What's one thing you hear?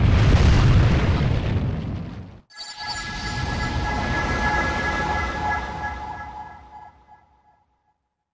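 A huge blast roars with a deep, heavy rumble.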